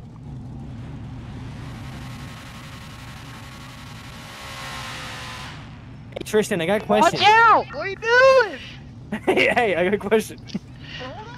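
Car tyres squeal and screech on pavement.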